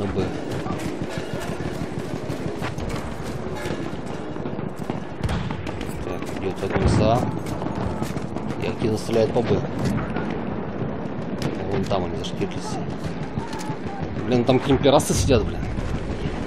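Gunshots crack repeatedly in the distance.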